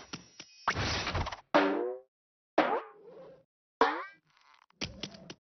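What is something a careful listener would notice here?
Cartoonish game sound effects chirp and whoosh in short bursts.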